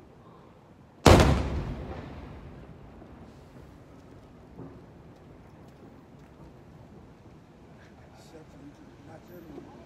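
Fireworks crackle and sizzle as sparks fall.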